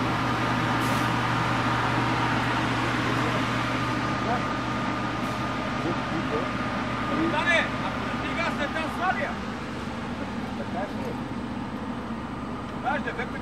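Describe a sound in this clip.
An aircraft engine drones steadily nearby.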